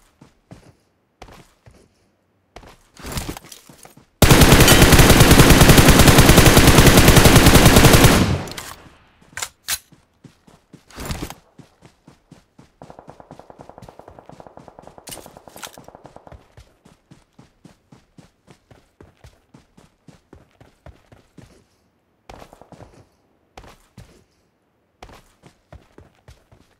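Footsteps rustle through tall grass at a steady pace.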